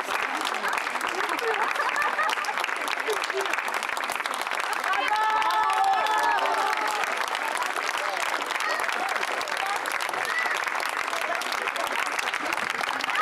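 A crowd of children and adults shouts and cheers outdoors.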